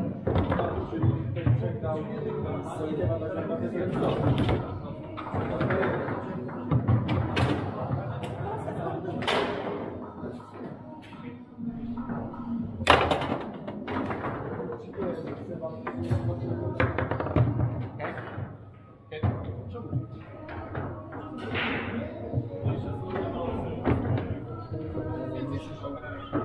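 Foosball rods clack and a hard ball knocks sharply.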